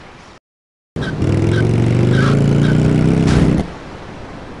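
A motorcycle engine revs loudly.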